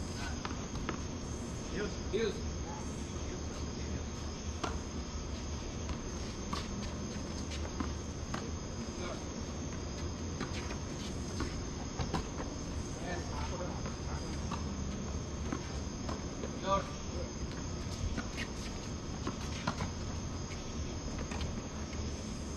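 Tennis balls are struck with rackets in a rally, with sharp pops going back and forth.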